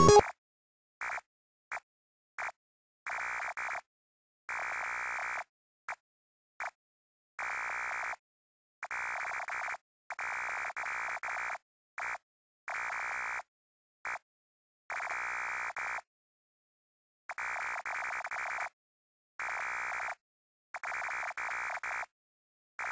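Short electronic blips tick rapidly as a retro game's dialogue text types out.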